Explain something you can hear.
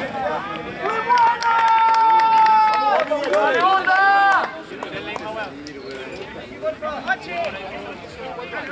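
A crowd of spectators shouts and cheers loudly close by, outdoors.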